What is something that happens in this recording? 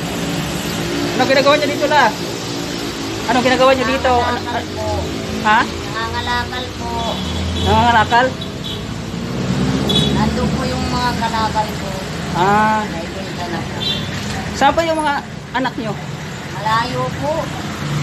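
An elderly woman speaks close by.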